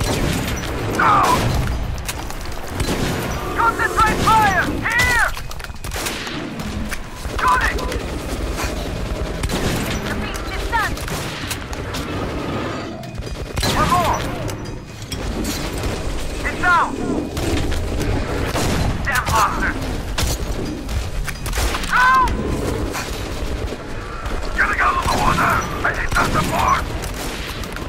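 A monstrous creature shrieks in high, wavering cries.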